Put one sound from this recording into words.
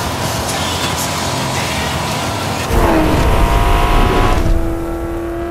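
Wind roars through a dust storm.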